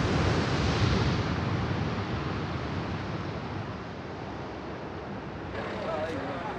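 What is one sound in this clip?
Waves crash and wash onto the shore.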